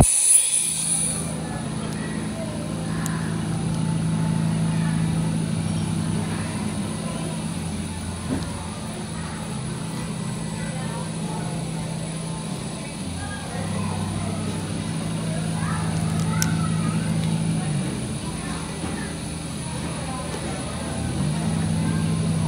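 An electric machine hums steadily.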